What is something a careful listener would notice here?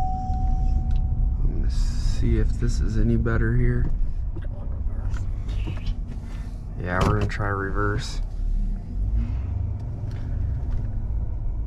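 A vehicle engine hums and tyres rumble on the road.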